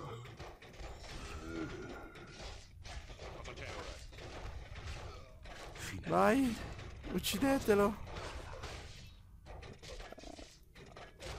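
Magic spells crackle and burst.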